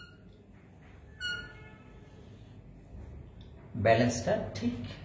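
A marker squeaks faintly across a whiteboard.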